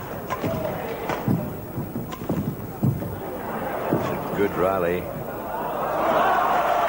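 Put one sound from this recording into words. A shuttlecock is struck sharply back and forth with rackets.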